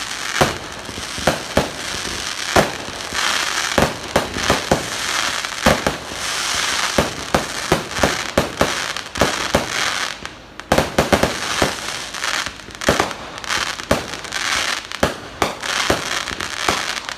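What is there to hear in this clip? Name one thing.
Fireworks bang and crackle in rapid bursts outdoors.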